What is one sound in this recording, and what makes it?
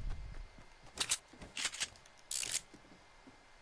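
Wooden boards clack into place one after another.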